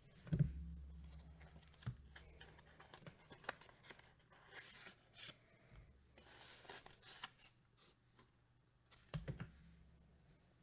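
Fingers tap and click against a hard plastic card case.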